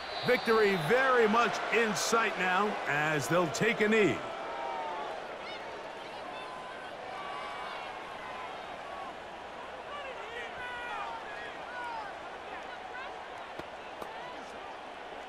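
A large stadium crowd murmurs steadily in the background.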